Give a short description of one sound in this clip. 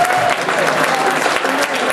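A dancer's heels tap on a wooden stage.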